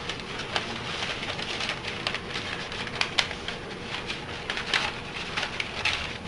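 Paper rustles and crinkles as hands unroll a long sheet.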